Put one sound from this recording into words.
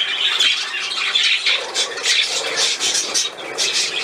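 A budgie flutters and splashes its wings in the water.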